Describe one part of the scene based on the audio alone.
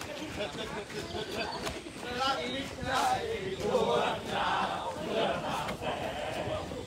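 Many footsteps patter on a paved path as a group jogs past.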